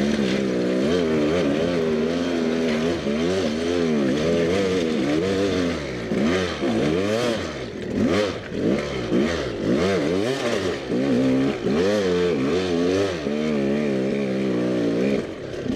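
Tyres crunch and clatter over loose rocks.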